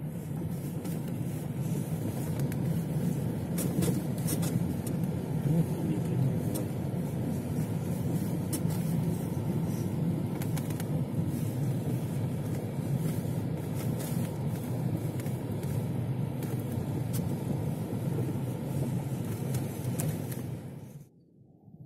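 Footsteps crunch on packed snow outdoors.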